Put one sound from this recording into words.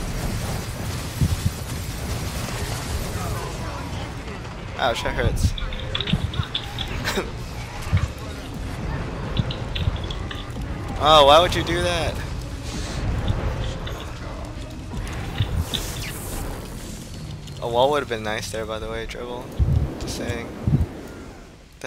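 Spell blasts and explosions crackle and boom in a game battle.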